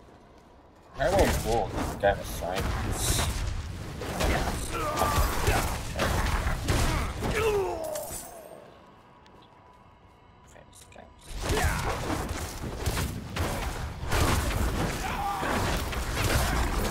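Fiery blasts roar and weapons clash in a fast fight.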